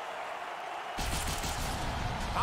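A loud whoosh sweeps past.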